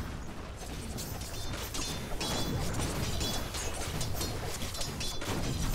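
Blows clash and spells crackle in a busy fantasy game battle.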